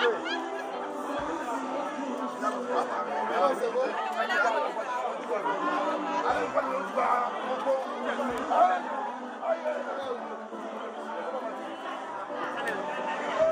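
Several men talk over each other outdoors.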